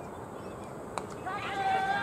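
A bat cracks against a cricket ball.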